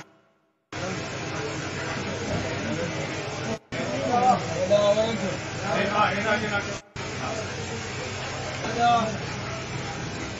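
A crowd of men talk and shout over one another close by, outdoors.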